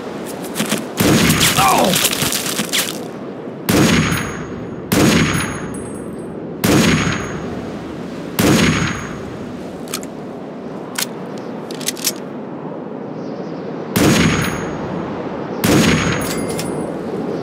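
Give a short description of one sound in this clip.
Rifle shots ring out loudly, one at a time, each echoing briefly.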